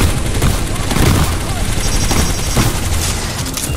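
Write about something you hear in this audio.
A gun fires in short, booming bursts.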